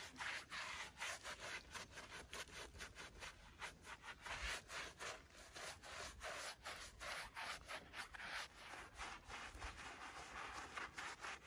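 A trowel scrapes and spreads wet mortar.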